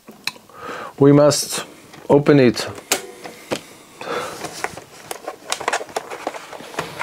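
Hard plastic parts click and knock as they are handled.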